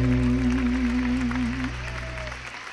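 A man sings a long held note through a microphone.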